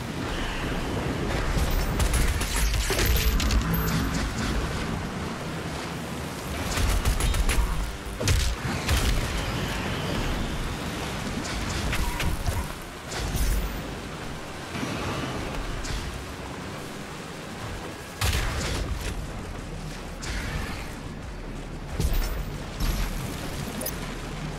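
Lava bubbles and roars with a low rumble.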